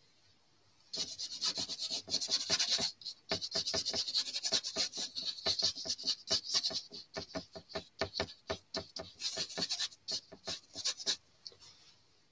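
A paintbrush dabs and scratches quickly on paper.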